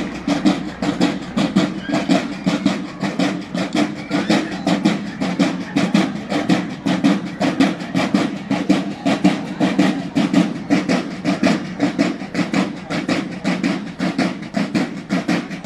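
A marching band beats snare drums in a fast, steady rhythm outdoors.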